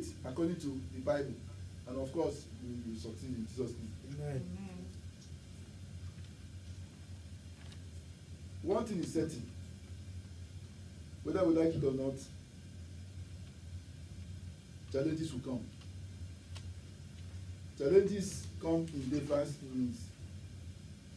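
A man speaks calmly into a headset microphone, in short phrases with pauses.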